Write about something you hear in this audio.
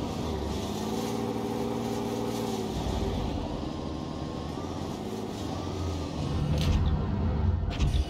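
A tank engine rumbles low and steady as the tank drives.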